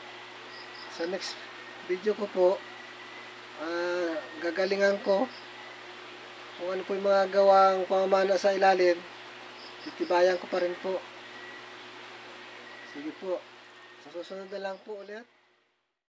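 A middle-aged man talks calmly and close to a phone microphone, in short bursts with pauses.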